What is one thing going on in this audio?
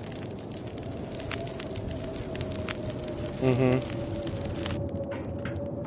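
A fire crackles and pops in a wood stove.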